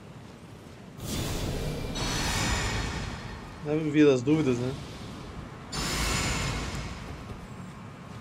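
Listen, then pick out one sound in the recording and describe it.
A magic spell swells with a bright shimmering whoosh.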